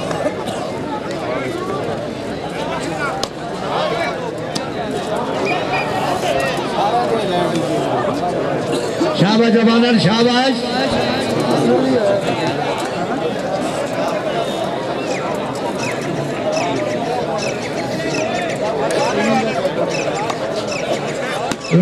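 A large outdoor crowd murmurs and chatters throughout.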